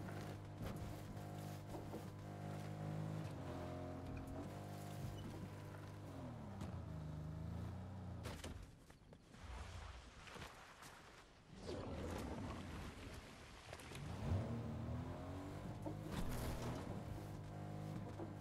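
A car engine hums and revs as a vehicle drives over rough ground.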